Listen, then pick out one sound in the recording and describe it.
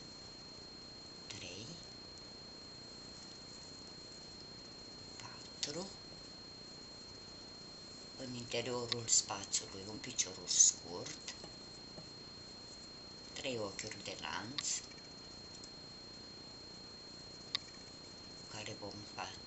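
Yarn rustles softly as a crochet hook pulls it through.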